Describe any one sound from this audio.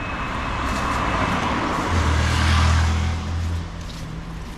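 Tyres hiss on the road as a car passes.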